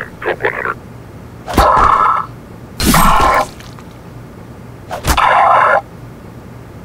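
A man shouts in short muffled bursts through a gas mask.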